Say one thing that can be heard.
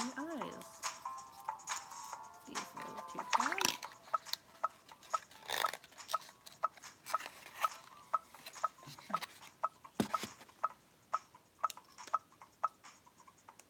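Plastic toy parts click and rattle in someone's hands.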